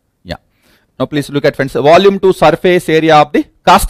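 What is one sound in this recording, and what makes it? A man lectures with animation, close to a microphone.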